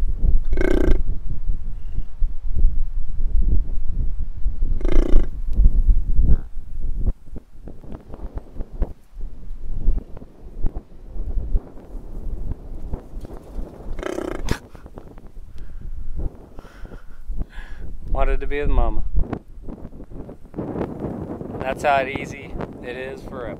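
A bison calf bleats nearby.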